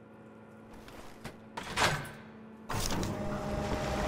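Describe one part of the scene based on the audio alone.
A heavy metal lever clanks as it is pulled.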